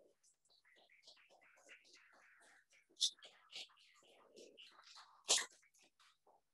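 A woman speaks quietly into a microphone.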